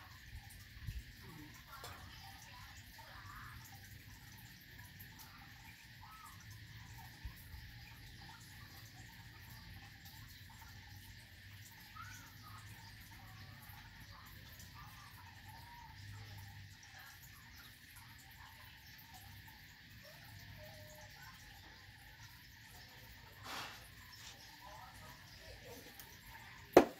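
Hands rub and scrub a dog's wet fur.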